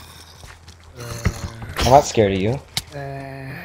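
A zombie groans low and raspy.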